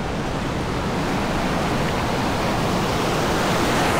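Waves break and crash nearby.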